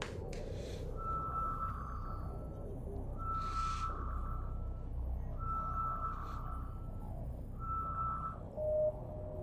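An electronic scanner tone chimes several times in a row.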